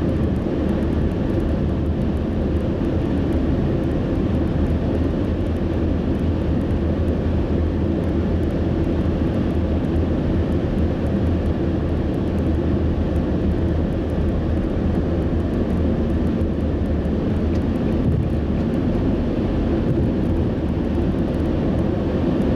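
Tyres roar on the road at highway speed.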